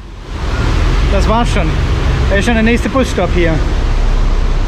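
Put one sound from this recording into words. An older man speaks calmly close to the microphone.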